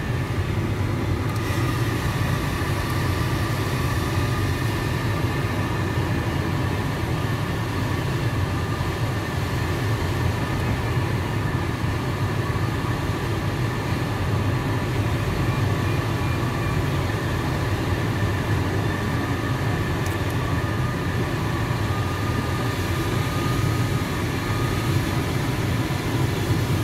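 Air rushes steadily past a glider cockpit in flight.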